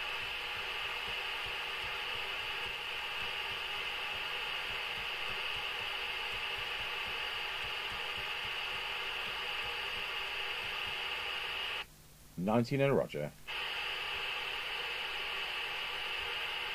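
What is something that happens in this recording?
A radio loudspeaker hisses with steady static.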